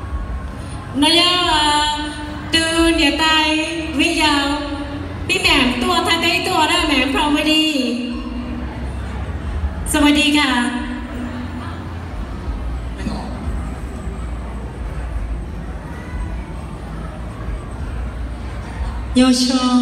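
Young women sing together through loudspeakers in a large echoing hall.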